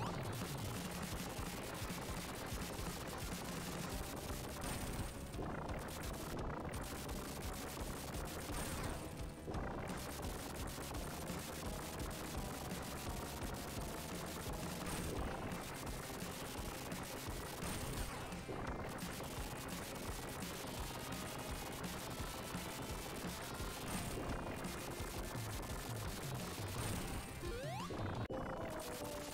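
Fast, driving video game music plays throughout.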